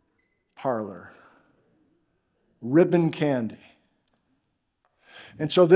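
A man lectures with animation, in short bursts.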